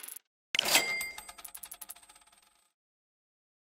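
Rapid coin ticks clatter as a reward is counted up.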